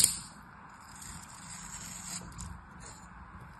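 A knife softly scrapes through soft sand.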